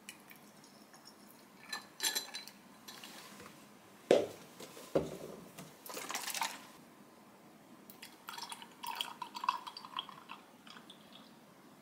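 Liquid pours into a glass over ice.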